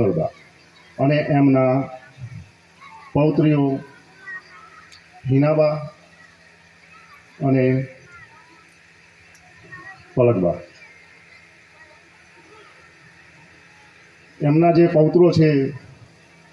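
A man speaks loudly and slowly through a microphone and loudspeakers, in short bursts with pauses.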